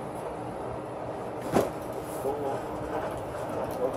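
Cardboard boxes thump and scrape as they are loaded into a car.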